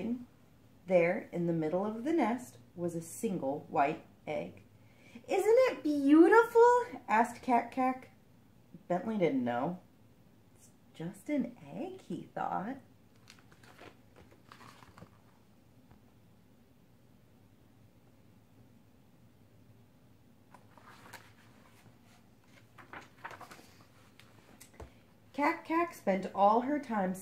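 A young woman reads aloud close by, with animated expression.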